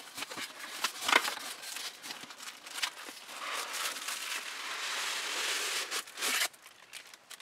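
A cardboard box scrapes and slides.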